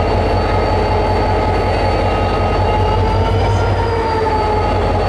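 A diesel locomotive engine rumbles and whines loudly close by.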